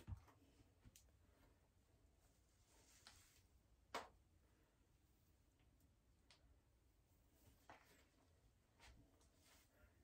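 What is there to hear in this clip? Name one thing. Hands rustle and scrunch through thick hair close by.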